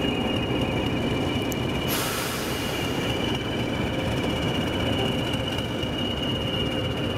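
A diesel locomotive engine rumbles steadily close by.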